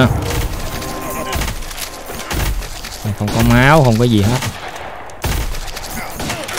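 Rapid electronic blasts and hits ring out from a video game.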